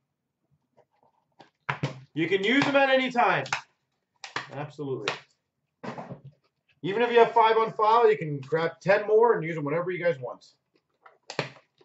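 A small cardboard box is handled and set down on a hard surface.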